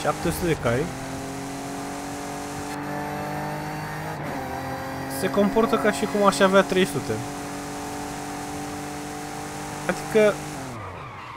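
A car engine revs up and down sharply during gear changes.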